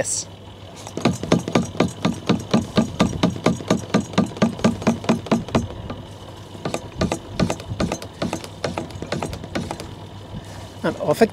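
Liquid gurgles and glugs rapidly through a hose into a plastic canister.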